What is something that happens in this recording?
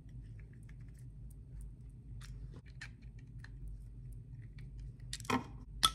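A screwdriver turns a small screw with faint scraping clicks.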